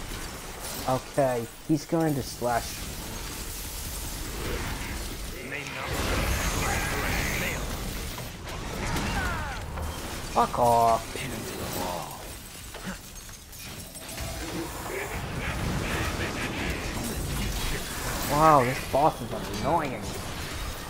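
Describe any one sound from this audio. A young man talks with animation into a nearby microphone.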